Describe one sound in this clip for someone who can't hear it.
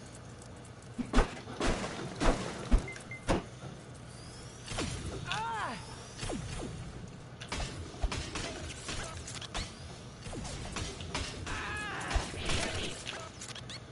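Game fight sounds thud and zap in quick bursts.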